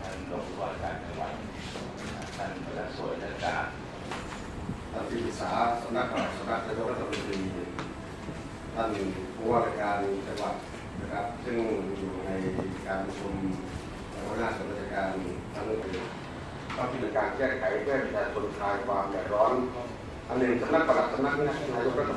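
A middle-aged man reads out through a desk microphone.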